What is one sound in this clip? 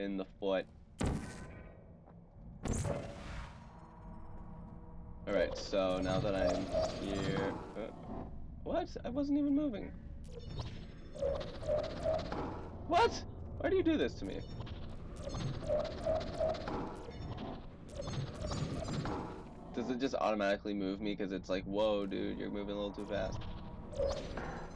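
A toy-like energy gun fires with sharp zaps.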